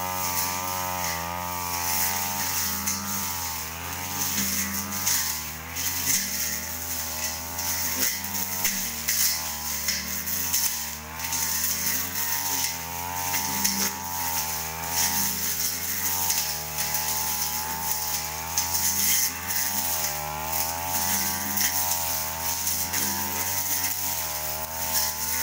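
A brush cutter engine drones nearby and rises and falls as it revs.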